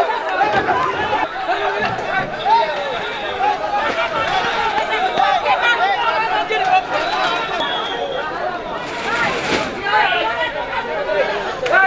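A crowd of men shout and argue loudly outdoors.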